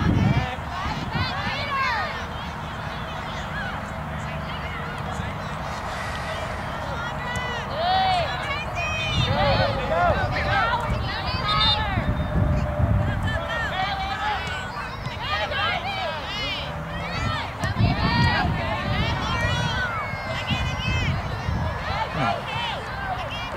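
Spectators shout and cheer from the sidelines, some distance off.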